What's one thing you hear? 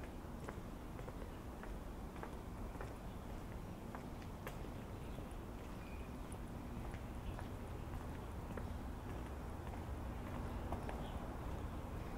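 Footsteps tap steadily on a brick sidewalk outdoors.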